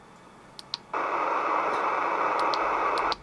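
A radio hisses with loud, steady static.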